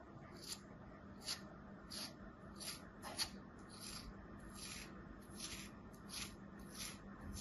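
A thin blade slices through packed sand with soft, crisp scraping sounds, again and again.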